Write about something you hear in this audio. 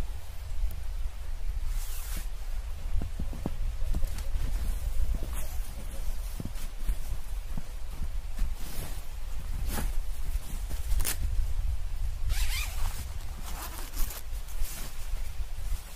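Boots crunch and squeak in deep snow.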